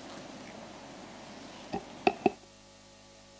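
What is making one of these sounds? A heavy book thumps down on a table.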